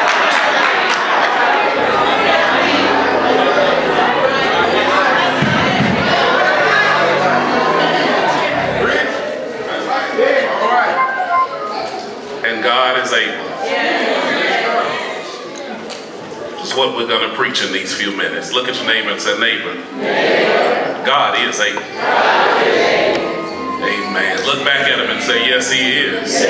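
A man speaks fervently through a microphone in an echoing hall.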